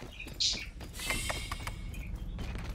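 A metal door slides open with a hiss.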